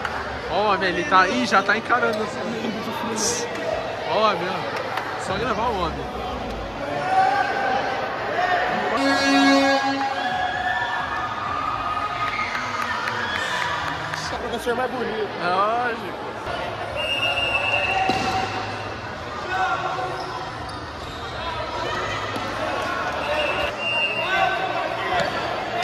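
Young men call out and shout across a large echoing hall.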